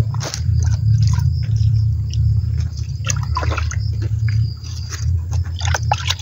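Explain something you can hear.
Water sloshes and splashes in a plastic bucket.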